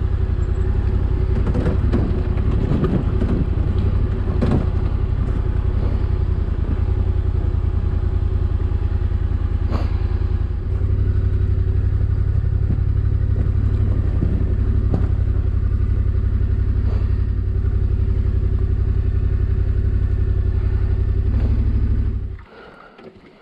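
A motorcycle engine rumbles steadily at low speed close by.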